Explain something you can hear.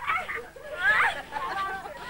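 A woman laughs loudly with excitement.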